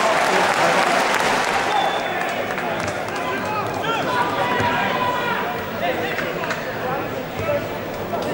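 A crowd murmurs and calls out in the open air.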